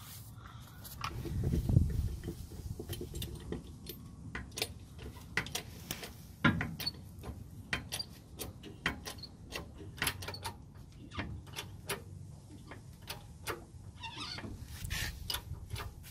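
A hydraulic bottle jack is pumped by its handle, clicking with each stroke.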